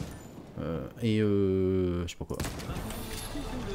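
A bright magical chime rings out and shimmers.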